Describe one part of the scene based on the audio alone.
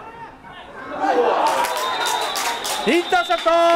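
A crowd of young men cheers and shouts loudly outdoors.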